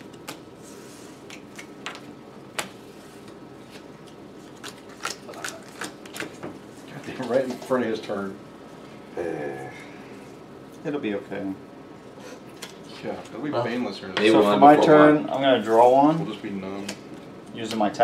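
Playing cards click and tap on a tabletop.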